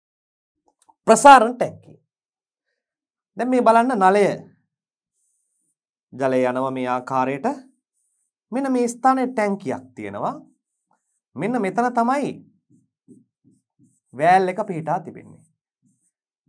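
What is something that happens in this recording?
A man speaks calmly in short phrases into a close microphone.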